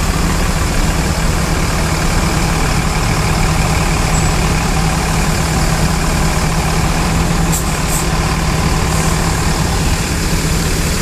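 A diesel coach engine idles close by.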